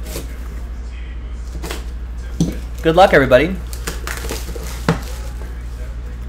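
Plastic wrap crinkles and tears as it is pulled off a box.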